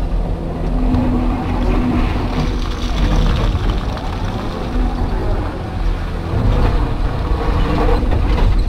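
A diesel engine rumbles and whines steadily from inside an excavator cab.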